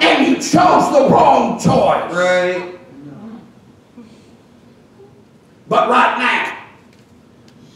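A man preaches with animation through a microphone and loudspeakers in an echoing hall.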